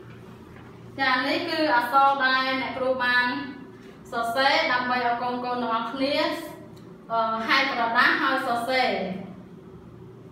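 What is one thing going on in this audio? A woman speaks clearly and calmly close by.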